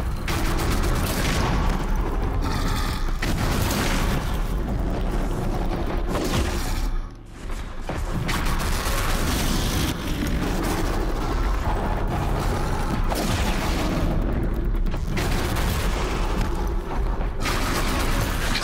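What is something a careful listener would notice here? A bowstring twangs as arrows fly.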